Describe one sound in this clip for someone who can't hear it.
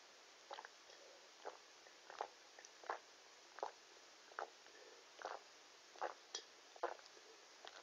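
A young boy gulps a drink in loud, regular swallows close by.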